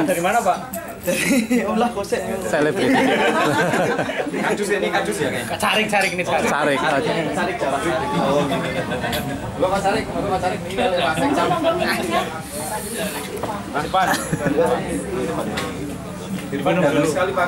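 Several men chatter nearby.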